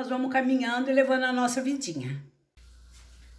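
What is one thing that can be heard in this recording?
An elderly woman speaks with animation close by.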